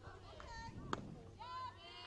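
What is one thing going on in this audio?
A bat cracks sharply against a softball.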